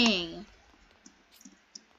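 Blocks are placed with soft, quick clicks.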